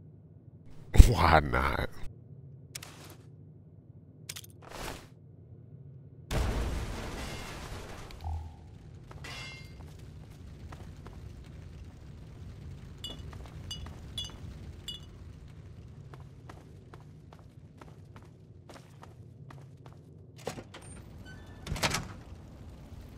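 A heavy gun fires with loud, booming blasts.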